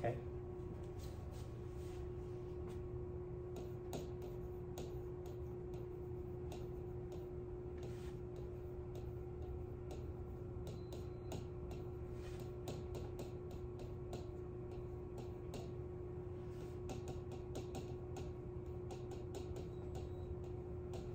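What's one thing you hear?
A pen taps against a glass board.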